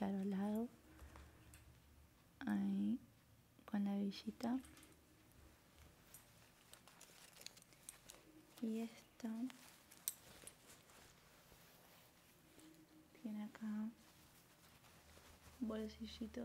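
Fabric rustles as clothing is handled.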